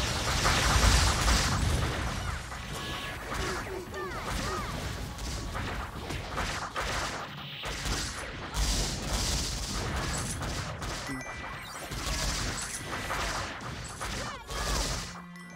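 Game music plays.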